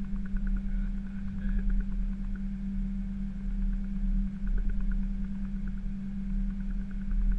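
An aircraft engine hums steadily and low.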